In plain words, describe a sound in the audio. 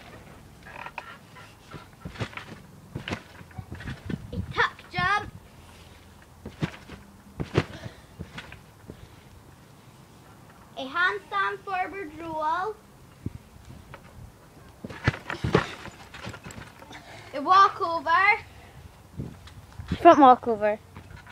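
Feet thump and bounce on a trampoline mat.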